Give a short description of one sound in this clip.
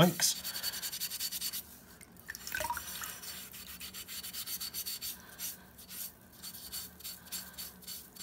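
Water drips and splashes into a sink.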